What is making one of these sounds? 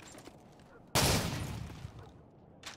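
A rifle fires a short burst at close range.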